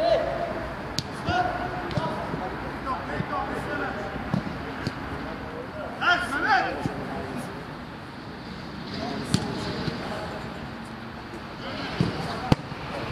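A football is kicked with dull thuds.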